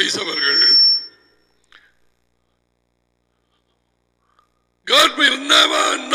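An older man speaks calmly through a headset microphone, with pauses.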